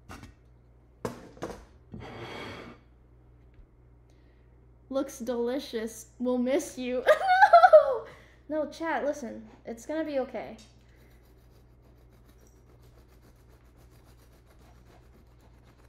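A knife scrapes and cuts through a cake.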